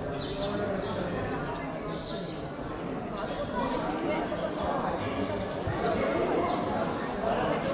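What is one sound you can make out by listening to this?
A crowd of men and women talks in a steady murmur outdoors.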